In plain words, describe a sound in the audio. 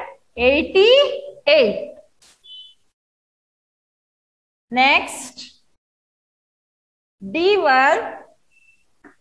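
A young woman speaks clearly nearby in short, lively phrases.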